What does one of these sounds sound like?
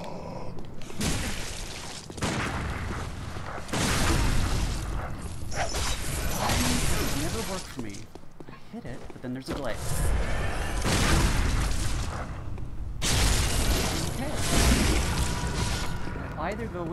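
Blades slash and strike in a fast fight.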